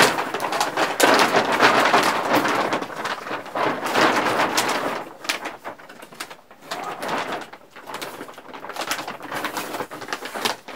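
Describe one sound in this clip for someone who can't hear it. A plastic sheet rustles and crinkles close by.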